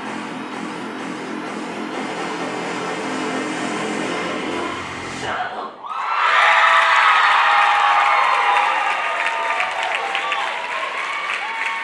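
Upbeat dance music plays loudly through loudspeakers in a large hall.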